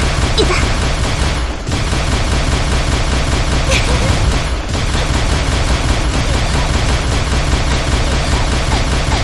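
An electric beam weapon crackles and buzzes steadily.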